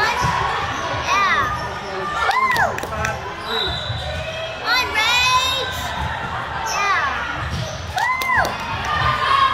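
Young girls shout and chatter in a large echoing gym.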